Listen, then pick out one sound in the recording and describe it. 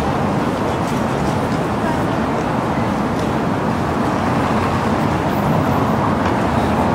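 Steady city traffic hums in the distance outdoors.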